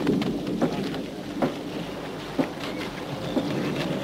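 Footsteps clatter on wooden planks.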